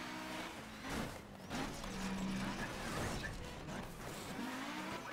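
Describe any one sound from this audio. A car bumps hard against a wall.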